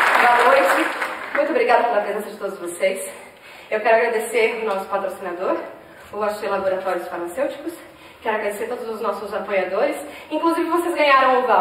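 A man speaks to the audience through a microphone, calmly, with echo in a large hall.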